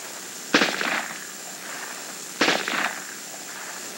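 A rifle fires sharp shots that echo outdoors.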